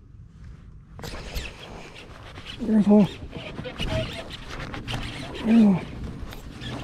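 A fishing reel whirs and clicks as line is wound in.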